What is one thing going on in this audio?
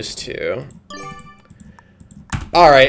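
A short electronic chime plays.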